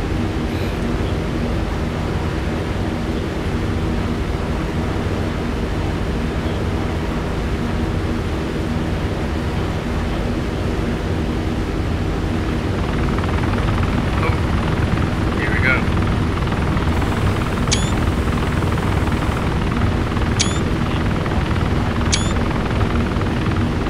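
A helicopter's engine and rotor drone loudly and steadily close by.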